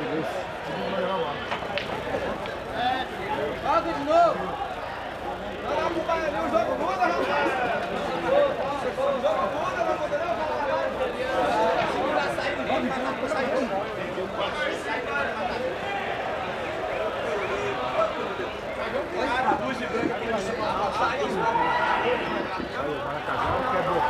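A crowd of spectators chatters throughout.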